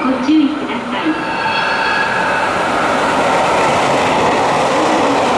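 A train rolls into the station and slows down.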